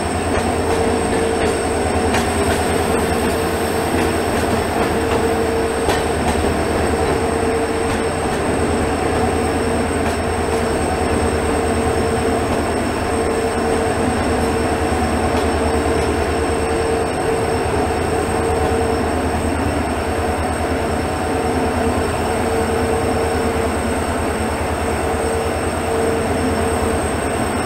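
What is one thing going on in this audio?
Freight wagons clatter and rattle past on the rails.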